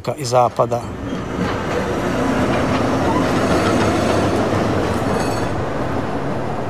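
A tram rumbles past.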